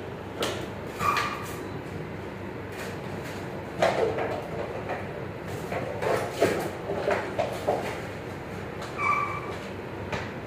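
Puppies whimper and yip nearby.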